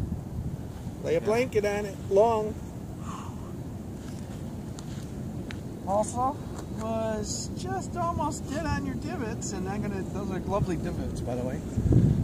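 An elderly man talks calmly nearby, outdoors.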